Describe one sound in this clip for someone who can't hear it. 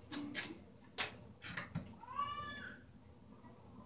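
A hand knocks and rattles a small metal electrical box.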